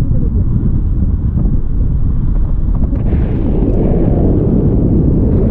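Wind rushes and buffets against a microphone in flight.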